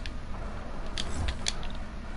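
A pickaxe swings and clangs.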